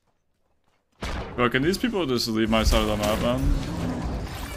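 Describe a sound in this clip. A game figure's spell blasts with a loud whoosh.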